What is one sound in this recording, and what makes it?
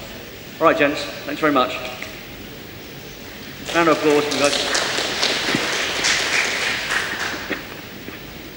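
A young man talks briefly.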